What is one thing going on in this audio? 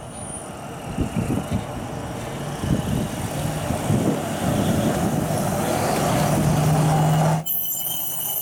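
A pickup truck on rail wheels rumbles and clatters over a level crossing.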